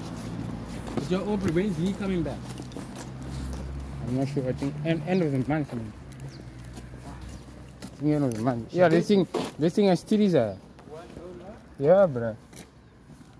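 A young man talks casually nearby.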